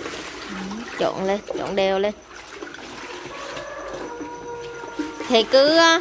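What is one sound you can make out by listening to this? A plastic scoop dips into liquid in a bucket.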